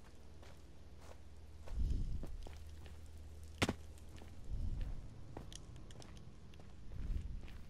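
Footsteps thud softly on soft ground.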